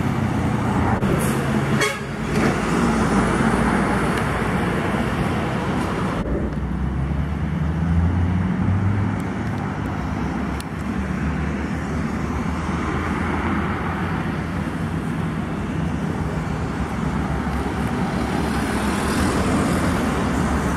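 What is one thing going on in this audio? Heavy trucks rumble along a road, their diesel engines droning.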